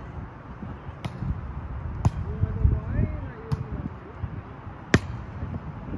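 A ball is kicked with sharp thuds outdoors.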